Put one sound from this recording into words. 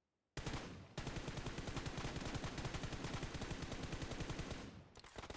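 An automatic rifle fires rapidly in a long burst.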